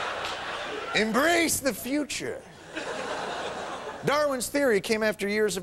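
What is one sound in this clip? A man speaks clearly into a microphone to an audience.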